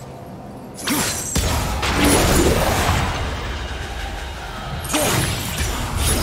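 A magical energy blast whooshes and crackles.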